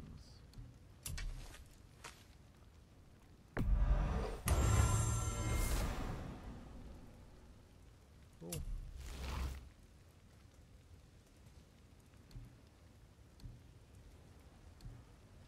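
Short soft menu clicks tick now and then.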